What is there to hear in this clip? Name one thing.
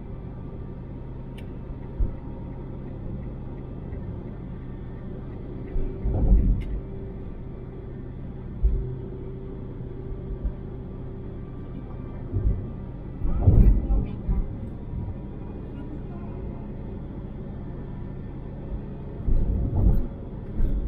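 Tyres rumble and thump over the road surface.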